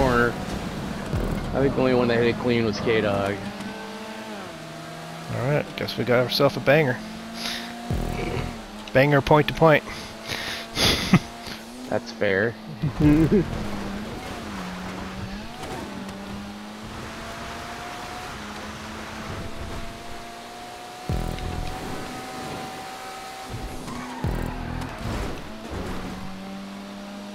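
A car engine hums and revs as it races.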